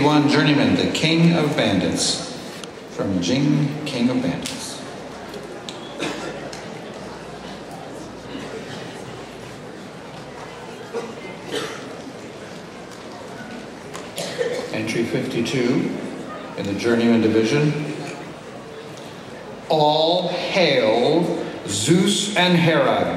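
A man speaks steadily through loudspeakers in a large echoing hall, with pauses.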